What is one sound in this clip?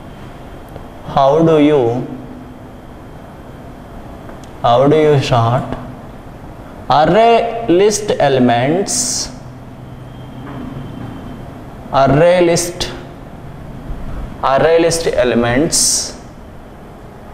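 A man speaks, explaining in short phrases.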